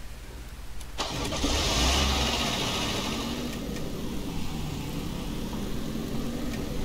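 A vehicle engine rumbles as it drives along.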